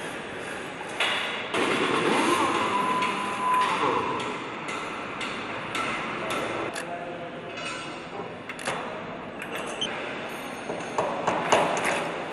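Metal parts clink and knock as a heavy crankshaft is lowered into an engine block.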